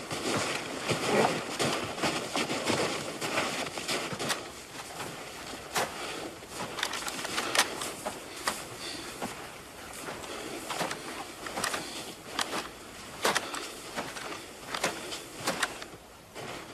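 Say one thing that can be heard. Footsteps crunch through deep snow close by.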